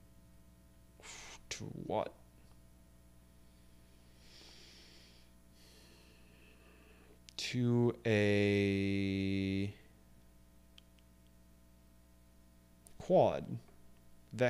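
A man speaks close to a microphone in short, casual bursts.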